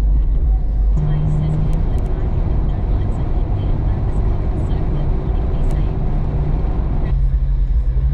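Wet snow patters against a windshield.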